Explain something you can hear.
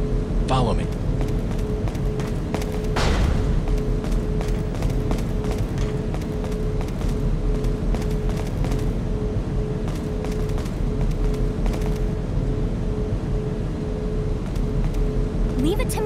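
Footsteps walk steadily on a hard floor.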